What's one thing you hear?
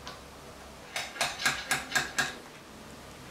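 Pliers snap a ring into place with sharp clicks.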